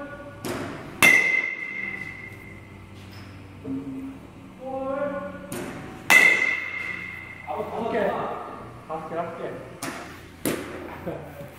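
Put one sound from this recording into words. A metal bat strikes a ball with a sharp ringing ping, again and again.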